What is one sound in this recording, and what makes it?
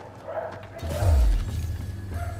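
A heavy blow lands with a deep thud.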